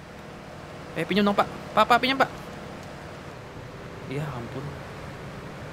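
A young man speaks animatedly into a close microphone.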